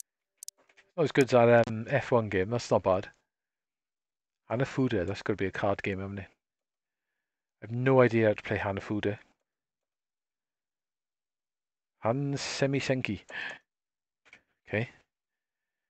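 A man talks calmly into a microphone, in short bursts with pauses.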